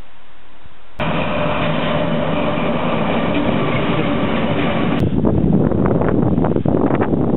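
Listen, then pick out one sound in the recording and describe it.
A diesel locomotive engine roars loudly close by.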